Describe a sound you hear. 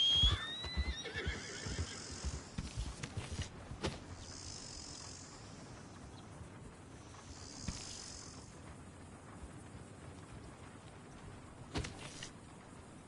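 Footsteps crunch softly through dry grass.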